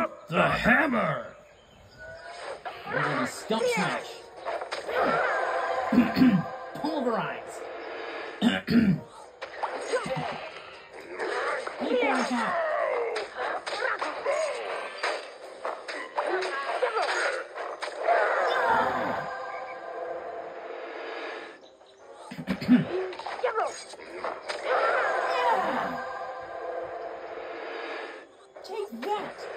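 Game sound effects thump and whoosh through a television speaker.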